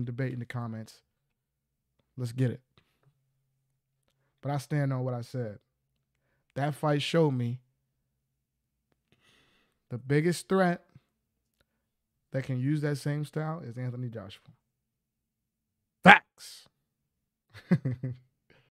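A man talks with animation, close into a microphone, in short bursts with pauses.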